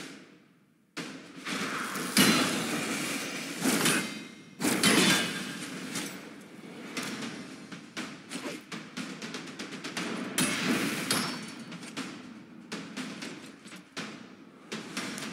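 Magic blasts and sword strikes crash in a game battle.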